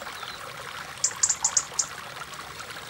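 A metal ladle clinks several times against a plate.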